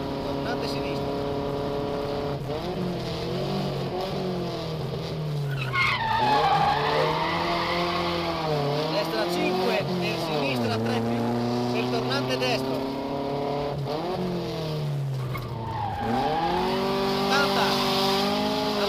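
A car engine revs up and down through gear changes, heard from inside the car.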